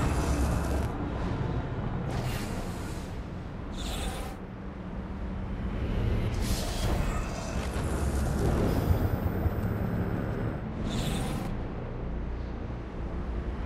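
Large wings flap in whooshing gusts.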